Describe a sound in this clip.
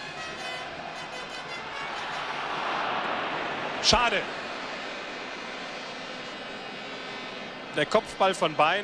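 A large stadium crowd roars, swelling and then fading.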